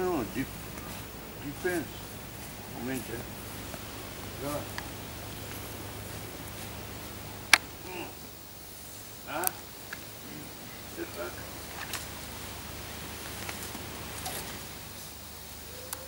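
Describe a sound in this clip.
A man speaks calmly outdoors, explaining.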